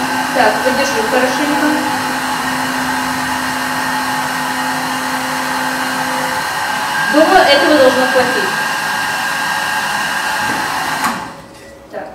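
A hair dryer blows with a loud steady whir.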